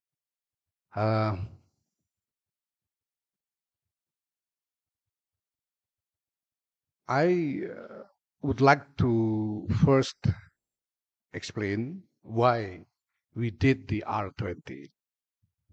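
A middle-aged man speaks slowly and deliberately into a microphone, with long pauses.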